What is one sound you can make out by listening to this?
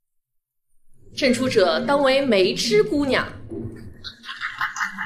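A young woman announces loudly and clearly, close by.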